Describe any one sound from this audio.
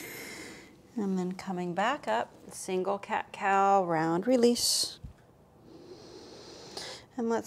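A woman speaks calmly and clearly close by.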